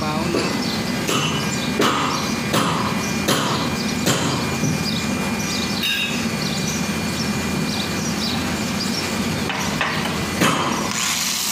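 Metal parts clank and knock.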